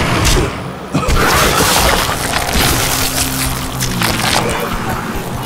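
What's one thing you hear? Wet flesh rips and splatters as a body is torn apart.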